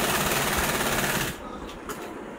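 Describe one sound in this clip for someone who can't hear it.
A sewing machine whirs briefly.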